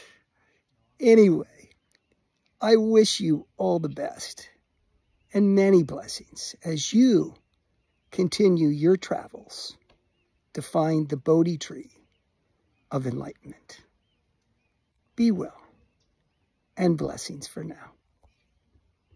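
An older man speaks calmly and warmly, close to the microphone, with short pauses.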